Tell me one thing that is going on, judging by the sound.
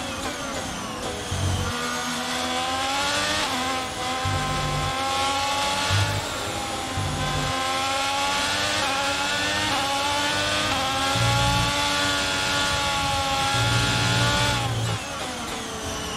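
A racing car engine screams at high revs, rising and dropping as the gears shift.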